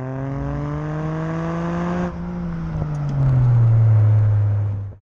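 A car engine roars at speed, rising in pitch then dropping as gears change.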